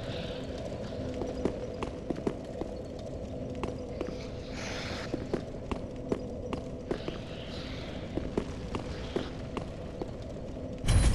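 Heavy armored footsteps clank steadily on a stone floor.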